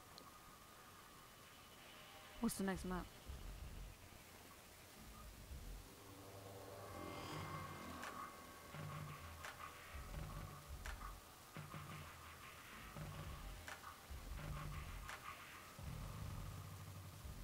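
Game menu sounds click softly as the selection moves.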